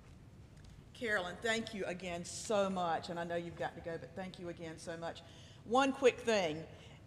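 An older woman speaks calmly through a microphone in a large room.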